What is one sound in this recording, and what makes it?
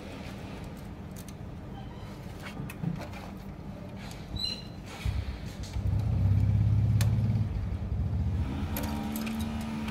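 Plastic parts of a printer click and rattle as hands take it apart.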